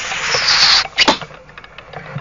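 A dart thuds into a board.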